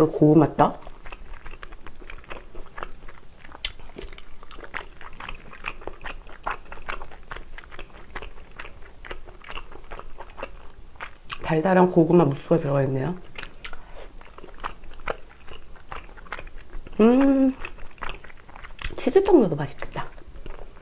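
A young woman speaks briefly and softly, close to a microphone.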